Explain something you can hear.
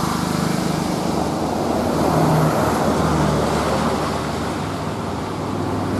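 A bus engine rumbles loudly as the bus drives past close by.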